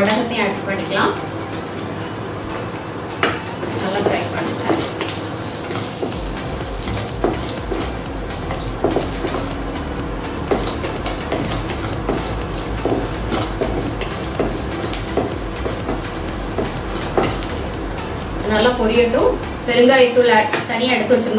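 Shallots sizzle in hot oil in a pan.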